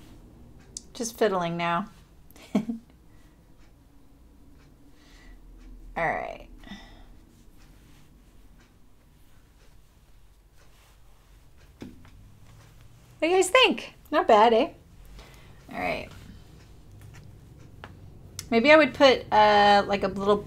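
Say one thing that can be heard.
A woman speaks calmly and warmly into a close microphone, in short bursts.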